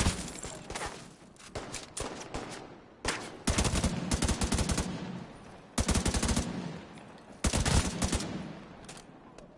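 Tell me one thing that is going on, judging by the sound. Rapid bursts of rifle fire crack loudly.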